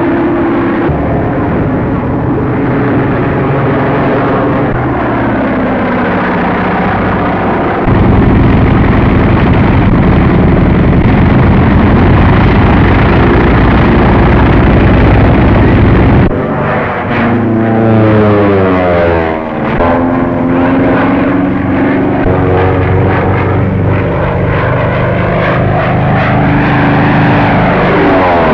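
A propeller plane engine drones loudly, its pitch rising and falling as the plane dives.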